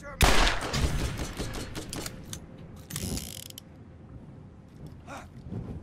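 A rifle clicks and clatters as it is reloaded.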